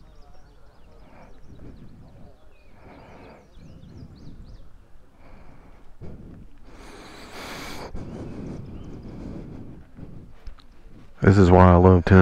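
Wind blows through the trees outdoors.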